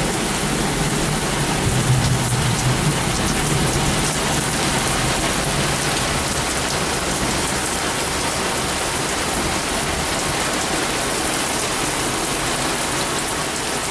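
Strong wind roars and gusts.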